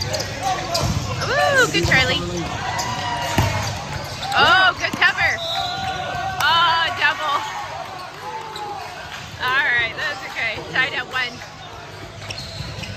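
Young men shout and cheer in a large echoing gym.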